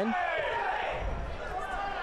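A crowd of spectators murmurs and shouts outdoors.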